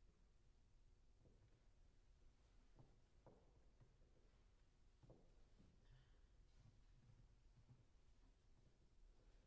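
A grand piano plays softly in a reverberant hall.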